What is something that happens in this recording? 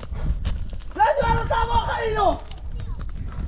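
A man calls out loudly outdoors.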